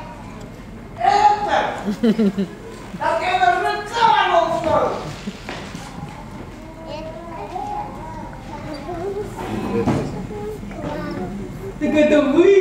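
A woman speaks with animation on a stage, heard from a distance in the audience.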